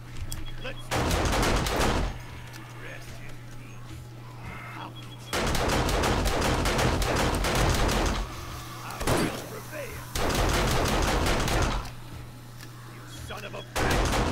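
A shotgun is loaded with metallic clicks.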